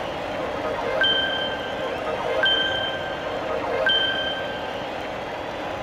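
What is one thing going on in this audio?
Bright chimes ring out several times.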